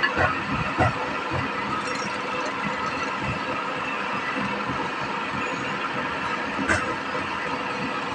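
A wood lathe spins with a steady hum.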